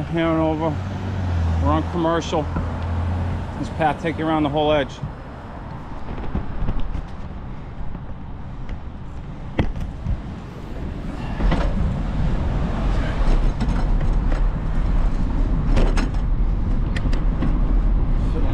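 Cars drive past on a nearby street.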